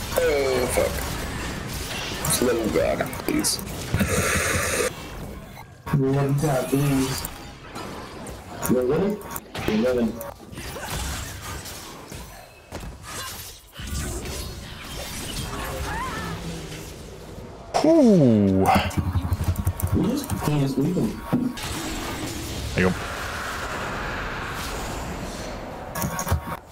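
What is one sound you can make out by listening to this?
Fantasy video game spell and combat sound effects whoosh and crackle.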